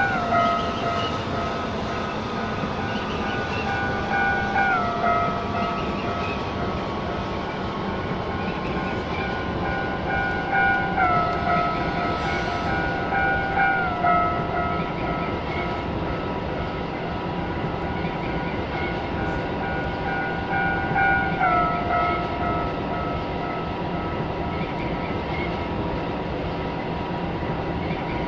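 An electric train motor whines, its pitch stepping down now and then.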